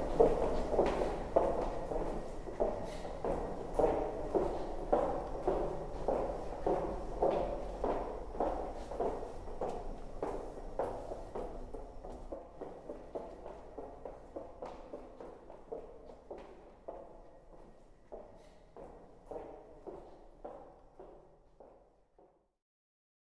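Footsteps echo along a hard floor in a large, echoing hallway and slowly fade into the distance.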